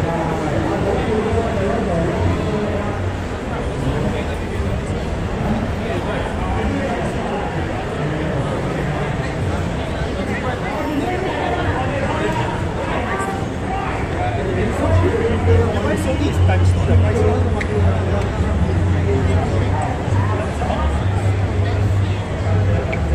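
A crowd murmurs and chatters all around in a large echoing hall.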